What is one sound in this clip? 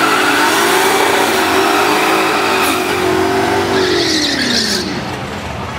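A car engine revs loudly at high pitch, then drops away.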